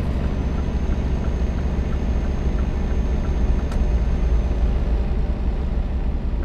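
A diesel truck engine drones, heard from inside the cab, while cruising on a motorway.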